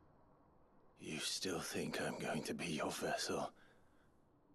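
A young man speaks calmly with a mocking tone.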